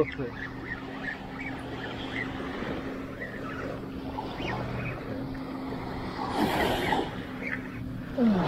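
Small waves wash onto the sand.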